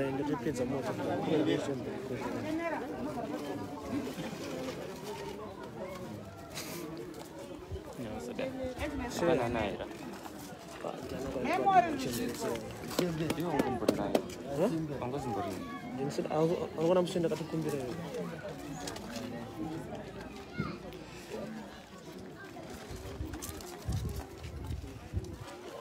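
Several young men talk and call out nearby outdoors.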